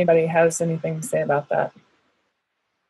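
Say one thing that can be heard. A young woman talks over an online call.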